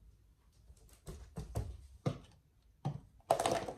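Footsteps thud across a wooden floor close by.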